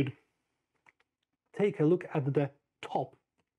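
A card is laid down on a table with a soft tap.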